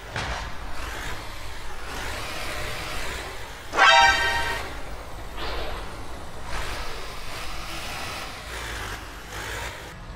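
A truck's tyres roll over a row of ridges with rattling bumps.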